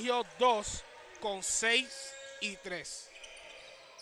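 Young players shout loudly in a large echoing gym.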